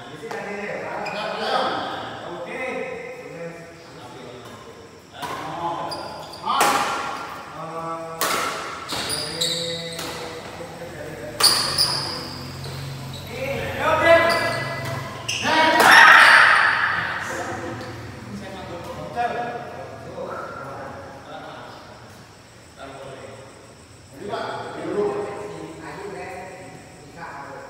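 Men call out and talk loudly in an echoing hall.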